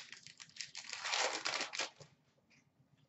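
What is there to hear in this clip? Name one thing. Hands crinkle and rustle a plastic wrapper close by.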